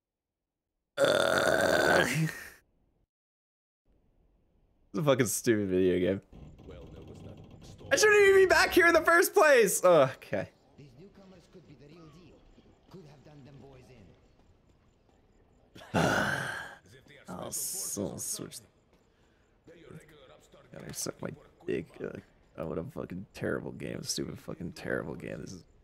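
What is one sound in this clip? A young man talks with animation into a close microphone, in bursts with pauses.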